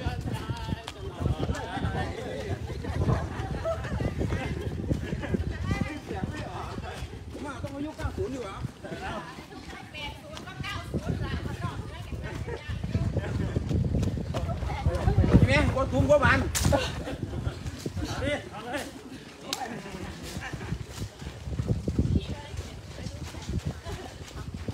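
Many footsteps patter on pavement as a group jogs close by.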